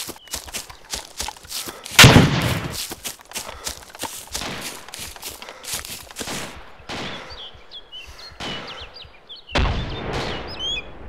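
Footsteps crunch steadily through grass and leaves.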